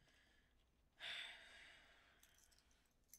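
A young woman sighs heavily close to a microphone.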